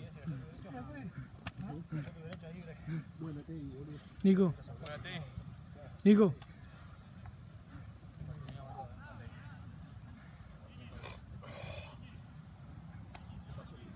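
Several young men talk and call out to each other outdoors.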